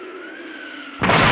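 A heavy blow lands with a loud crash.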